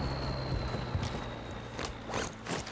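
Footsteps tap on pavement.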